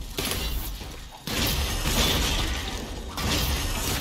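An explosion bursts with a crackle of sparks.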